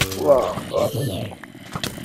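A sword strikes a creature with dull thuds.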